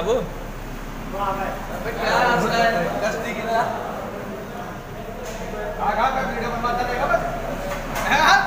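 Several young men talk and chatter loudly nearby.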